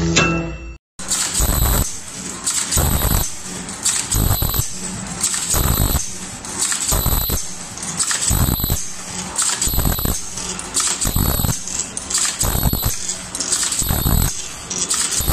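A machine thumps in a regular rhythm.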